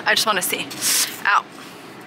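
A plastic tub is lifted off a shelf.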